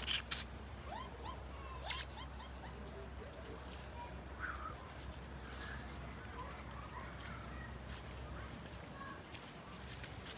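Small dogs give high, squeaky chirps back and forth.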